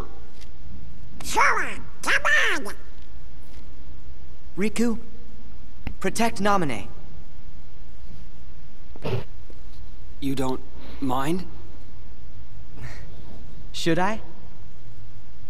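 A boy speaks softly and warmly.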